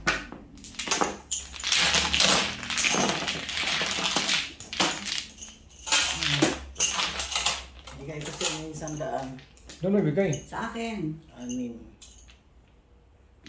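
Mahjong tiles clatter and rattle as hands shuffle them across a table.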